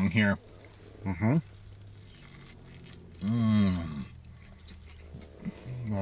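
A man chews food noisily.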